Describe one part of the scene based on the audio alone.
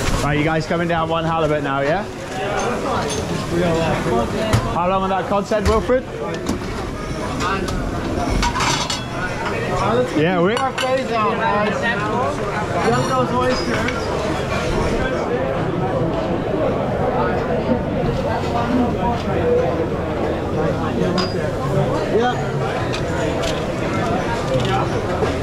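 Many men and women chatter at once around the listener.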